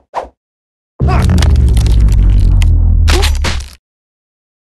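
A deep rumbling boom swells and then cuts off.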